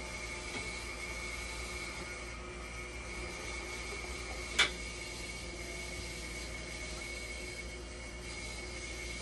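A dialysis machine sounds a steady high tone.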